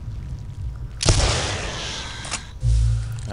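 A shotgun fires a loud blast that echoes.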